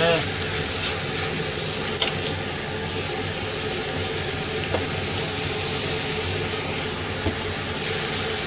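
A spatula scrapes and clinks against a pan.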